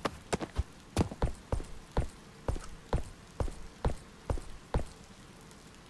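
Footsteps clank on a metal floor at a steady pace, then stop.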